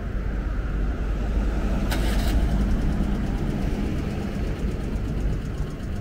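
A large truck rumbles past close by.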